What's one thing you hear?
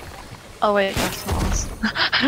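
A pickaxe swings and strikes with a sharp thud.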